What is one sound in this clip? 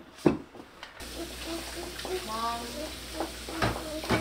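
Water runs into a sink.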